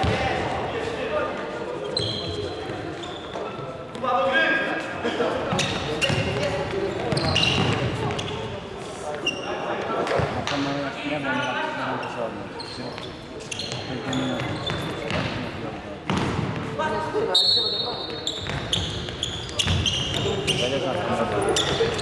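Players' shoes squeak sharply on a hard floor.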